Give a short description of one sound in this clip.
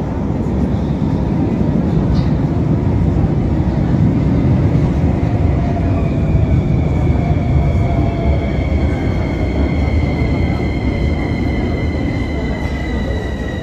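A subway train rumbles into the station.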